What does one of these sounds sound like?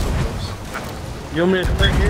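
Wood splinters and cracks as a cannonball hits a ship.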